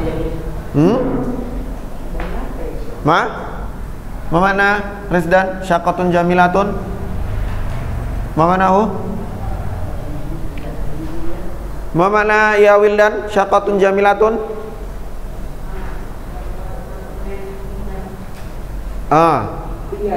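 A young man speaks with animation nearby, in a slightly echoing room.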